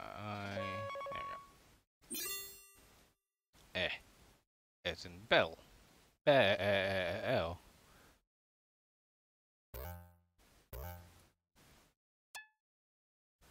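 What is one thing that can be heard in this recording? A video game plays short electronic chimes and beeps.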